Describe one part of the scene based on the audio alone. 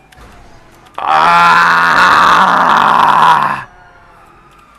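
Tyres screech loudly as a car skids.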